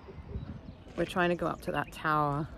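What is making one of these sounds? A middle-aged woman talks calmly and close by, outdoors.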